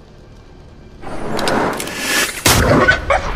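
A game attack effect crashes with a loud burst.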